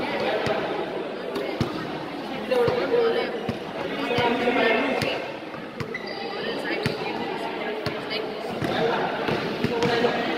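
A basketball bounces on a hard court floor.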